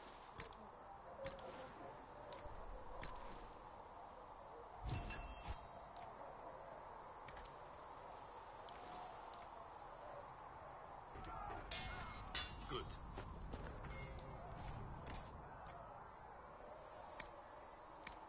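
Soft menu clicks sound as selections change.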